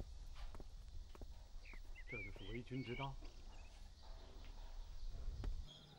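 A middle-aged man speaks quietly.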